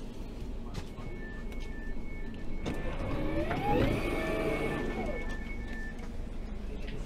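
A door alert beeps repeatedly.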